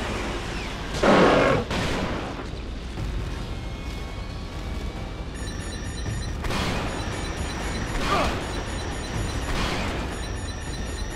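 A rifle fires loud, booming shots that echo away.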